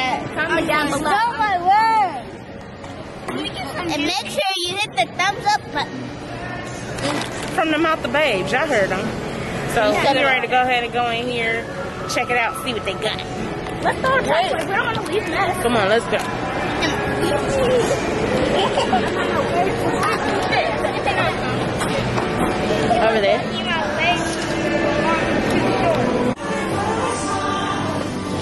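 Young women talk and laugh excitedly close by.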